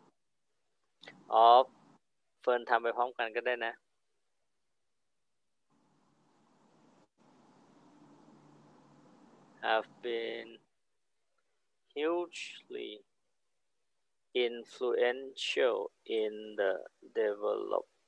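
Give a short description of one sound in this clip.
A woman speaks calmly and slowly into a microphone, dictating in short phrases.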